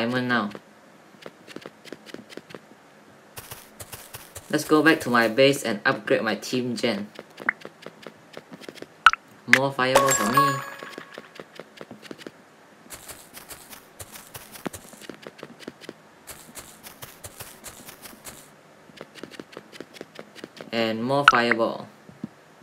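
Quick light footsteps patter steadily.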